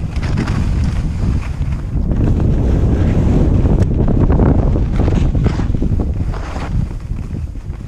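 Wind rushes past loudly, outdoors.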